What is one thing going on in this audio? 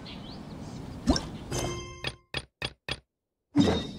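Game menu sounds chime and click as a menu opens.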